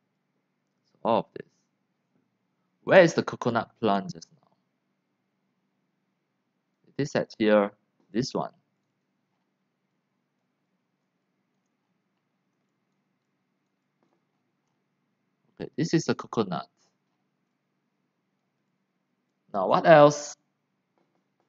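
A man speaks calmly into a microphone, in short bursts with long pauses.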